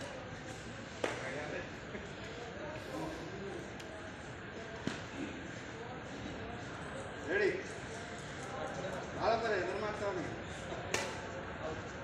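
A badminton racket strikes a shuttlecock with a sharp pop.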